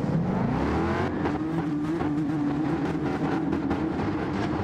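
Several racing cars roar past as they speed up.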